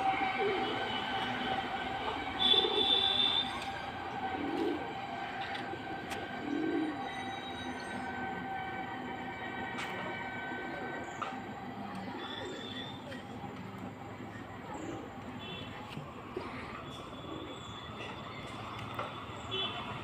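Pigeons coo softly and repeatedly nearby.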